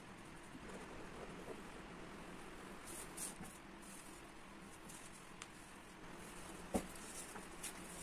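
Sheets of paper rustle and slide across a desk close by.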